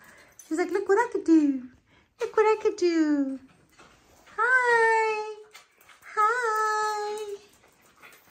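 A small dog whines and yelps in high, rising and falling cries.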